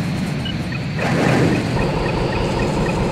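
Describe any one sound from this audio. A missile launches with a rushing whoosh.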